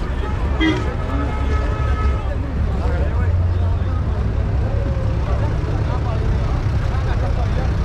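A crowd of men talks nearby outdoors.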